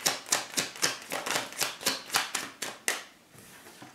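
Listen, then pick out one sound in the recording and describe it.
Playing cards flick and riffle rapidly as they are shuffled.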